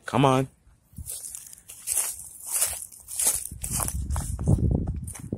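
Footsteps crunch on dry leaves and gravel.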